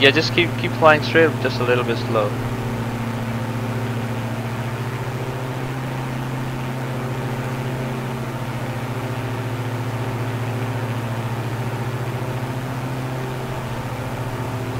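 A propeller plane's engine drones steadily throughout.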